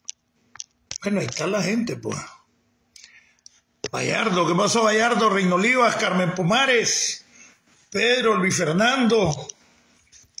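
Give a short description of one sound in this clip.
A middle-aged man speaks slowly and calmly, close up, in short bursts with pauses.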